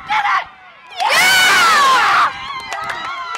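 A young woman screams with joy close by.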